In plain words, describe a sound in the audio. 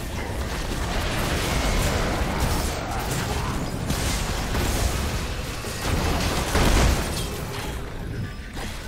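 Video game spell blasts and hits crackle and boom in a hectic battle.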